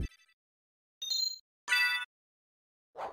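Short electronic menu chimes beep.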